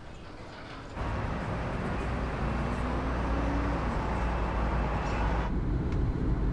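Cars drive past along a street.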